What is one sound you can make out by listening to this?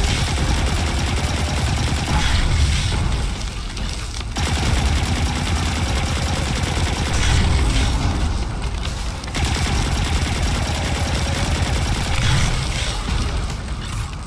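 Rapid gunfire rattles repeatedly.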